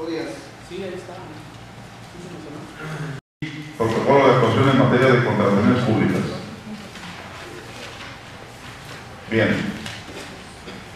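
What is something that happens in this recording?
A man speaks out loud to a group in a room with some echo.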